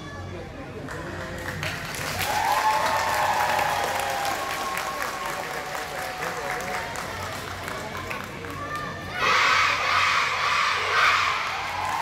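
A marching band plays brass and drums, echoing through a large hall.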